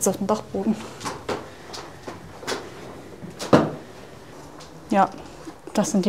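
Footsteps thud down wooden stairs.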